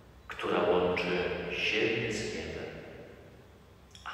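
A man speaks or chants through a microphone in a large, echoing hall.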